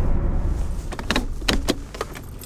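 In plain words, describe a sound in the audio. Keys rattle and click in a car's ignition.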